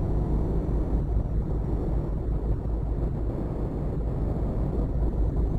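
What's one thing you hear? A truck engine rumbles steadily at cruising speed.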